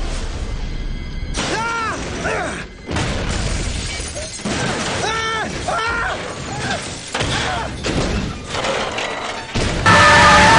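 A heavy vehicle crashes and tumbles with loud thuds and scraping.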